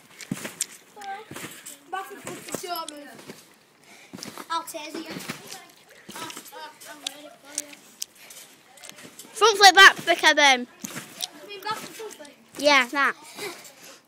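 A boy bounces on a trampoline with soft thumps.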